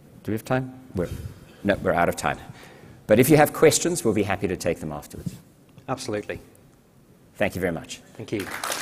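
A man speaks into a microphone to an audience in a large hall.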